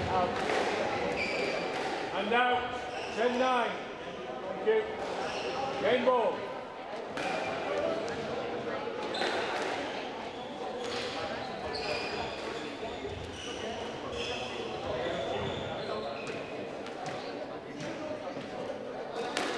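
Sneakers squeak and patter on a wooden court floor in a large echoing hall.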